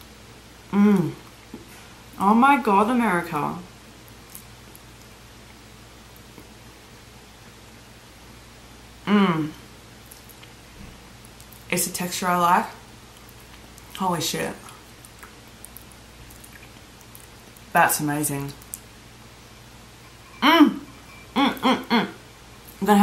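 A young woman speaks close by with animation, in short bursts.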